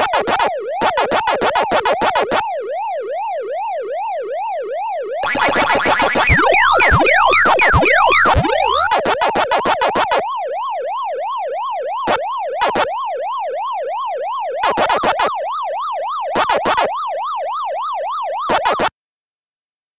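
A retro arcade game plays a looping wailing siren tone.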